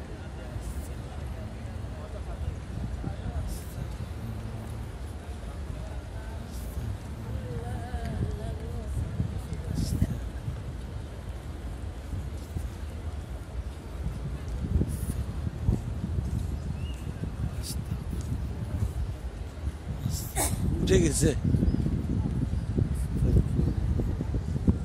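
A crowd of people murmurs and chatters in the distance outdoors.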